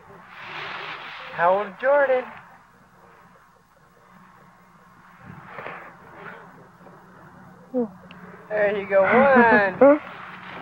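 Dry leaves rustle as a toddler moves through a pile.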